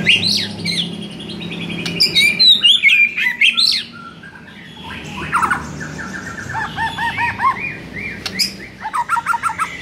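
A songbird sings loud, varied whistles and trills close by.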